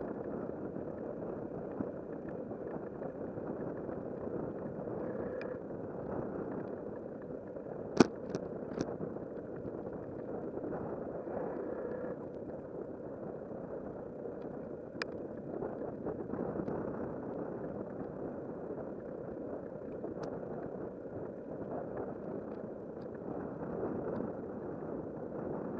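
Bicycle tyres roll over an asphalt path.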